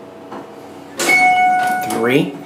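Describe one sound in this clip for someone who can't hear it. An elevator chime dings once.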